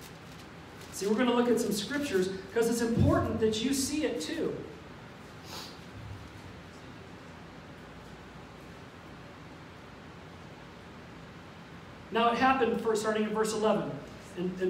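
A middle-aged man speaks calmly into a microphone over a loudspeaker.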